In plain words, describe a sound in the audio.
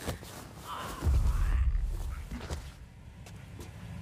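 A man grunts and struggles as he is choked.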